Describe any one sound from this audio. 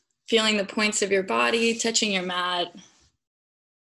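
A young woman speaks calmly and close up into a microphone.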